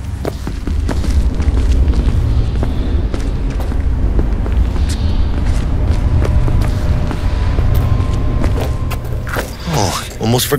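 An elevator hums steadily as it rides.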